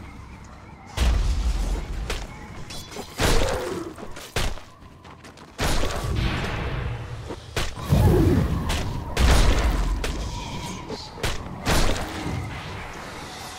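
Magic blasts and sharp impacts crash in loud bursts.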